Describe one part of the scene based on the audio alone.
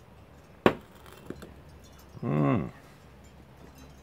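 A glass is set down on a hard table with a soft clink.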